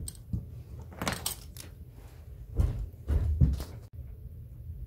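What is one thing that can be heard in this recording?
Metal tools clatter onto a hard surface.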